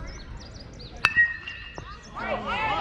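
A metal bat strikes a ball with a sharp ringing ping.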